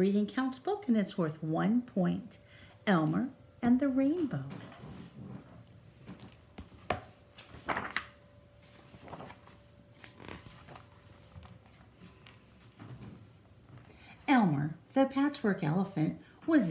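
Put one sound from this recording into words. A middle-aged woman speaks warmly and with animation, close to the microphone.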